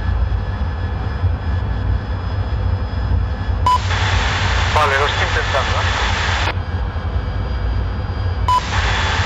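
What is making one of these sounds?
A jet engine roars with a steady low rumble.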